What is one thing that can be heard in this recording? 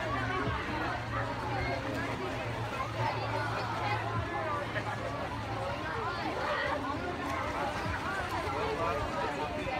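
Water splashes as a child swims.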